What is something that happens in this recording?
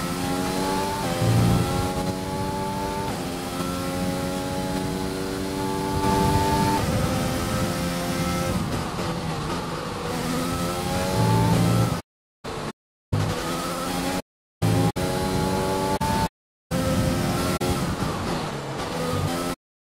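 A racing car engine whines at high revs, rising through the gears and dropping as it brakes.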